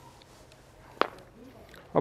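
A toy truck's plastic wheels bump onto a ramp.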